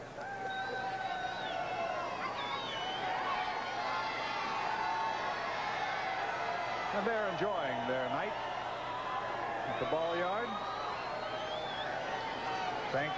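A large crowd cheers and roars in a stadium.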